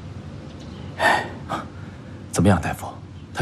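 A young man asks a question in a calm voice, close by.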